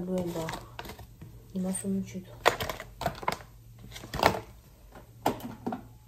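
A plastic packet crinkles.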